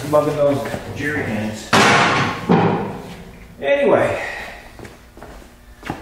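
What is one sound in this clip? A metal ramp clanks as it is set down.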